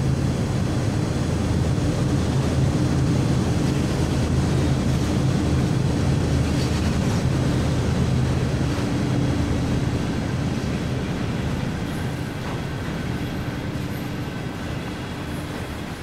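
Freight wagons rattle and clatter over the rails.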